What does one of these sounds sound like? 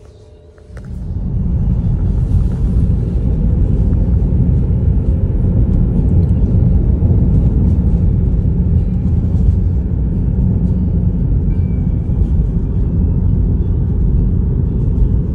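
A car's engine hums steadily.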